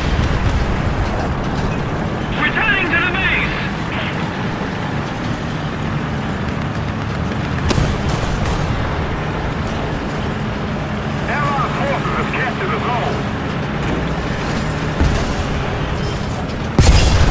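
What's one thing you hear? A tank engine rumbles steadily and deeply.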